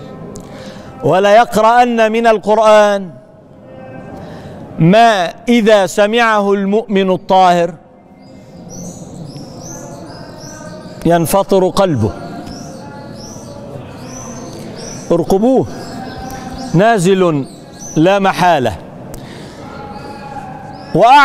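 A man speaks calmly and expressively into a close microphone, in bursts with pauses.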